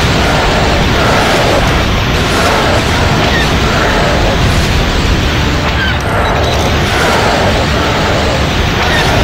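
Laser blasters fire in quick bursts.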